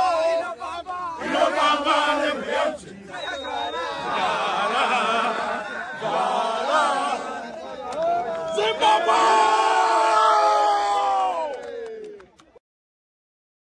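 A group of young men sing and chant loudly together nearby.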